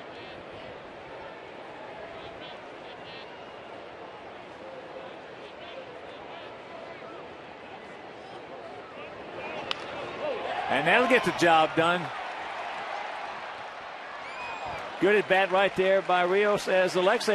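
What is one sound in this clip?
A crowd murmurs in a large outdoor stadium.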